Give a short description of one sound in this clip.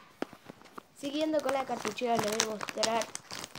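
A young girl talks in a high, lively voice close by.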